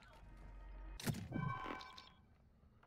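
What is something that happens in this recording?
A metal supply box clunks open.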